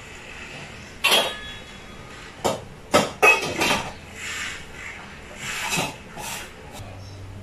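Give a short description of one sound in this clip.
A metal pot lid clanks against a pot.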